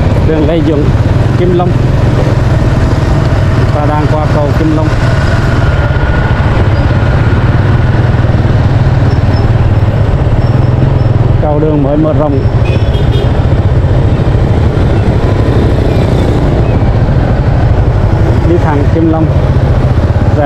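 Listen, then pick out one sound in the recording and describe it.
Wind roars loudly against a microphone on a moving motorbike.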